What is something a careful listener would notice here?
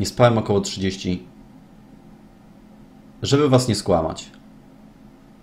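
A man speaks calmly and close into a microphone, in two short bursts.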